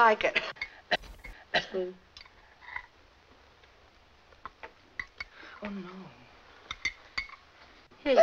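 A spoon clinks against a glass jar.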